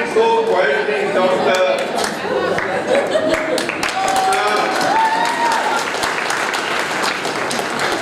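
A crowd of men and women laughs and cheers loudly nearby.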